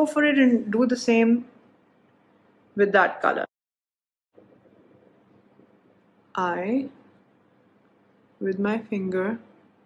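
A young woman talks calmly and close by, in short bursts with pauses.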